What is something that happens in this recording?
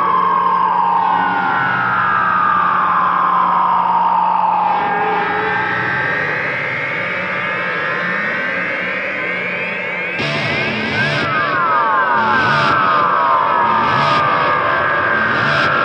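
Several dirt bike engines rev loudly, their pitch rising and falling.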